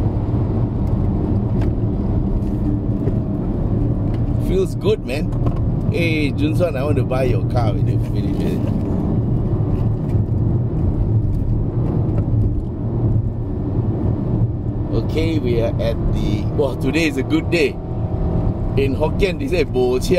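A car engine hums steadily, with road noise.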